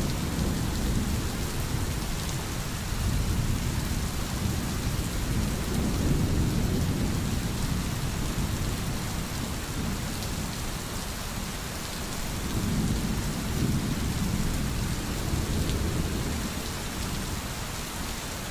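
A stream flows and gurgles gently.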